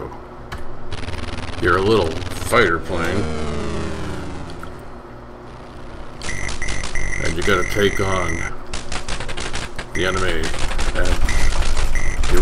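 Electronic game music plays.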